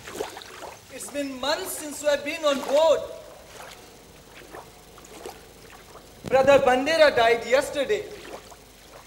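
A young man sings through a microphone.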